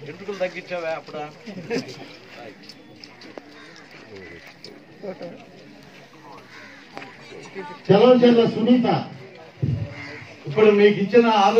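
A crowd of men murmurs and chatters nearby.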